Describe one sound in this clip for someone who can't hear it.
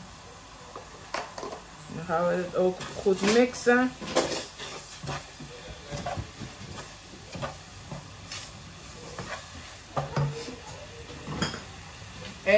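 A wooden spoon scrapes and stirs inside a metal pot.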